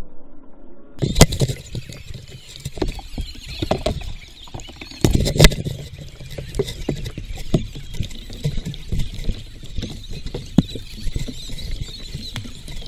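A wooden paddle splashes in water close by.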